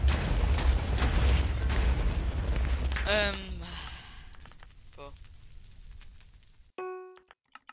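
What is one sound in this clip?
Explosions burst loudly in quick succession.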